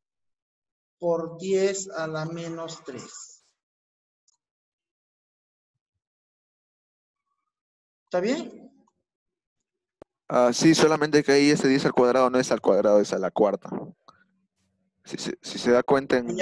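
A man speaks calmly through a microphone on an online call, in short bursts with pauses.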